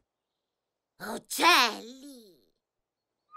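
A cartoon character gasps in surprise.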